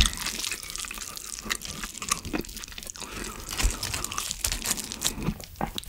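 A spoon scrapes and clinks against a metal dish.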